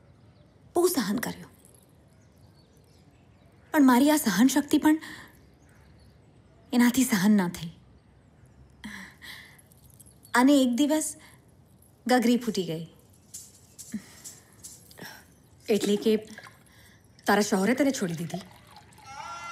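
A woman speaks nearby, with emotion, in short pauses.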